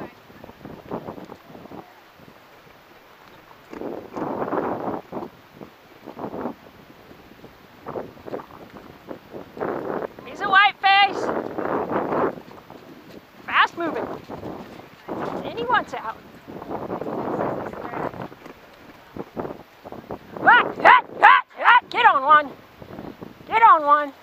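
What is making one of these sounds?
A horse's hooves thud on soft dirt.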